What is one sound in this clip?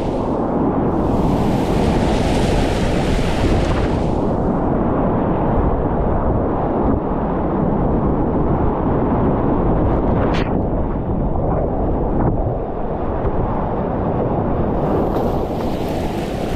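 White water rushes and churns loudly close by.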